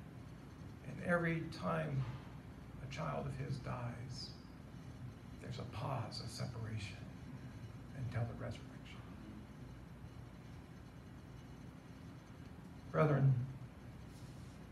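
A man speaks slowly and solemnly into a microphone in a large room, with pauses between phrases.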